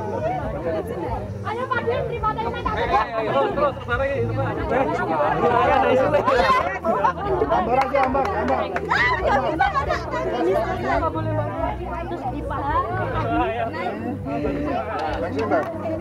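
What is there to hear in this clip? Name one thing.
A group of young men and women chatter, shout and cheer nearby outdoors.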